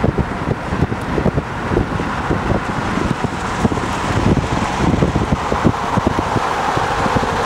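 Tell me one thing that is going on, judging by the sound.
Wind buffets loudly against the microphone from a moving vehicle.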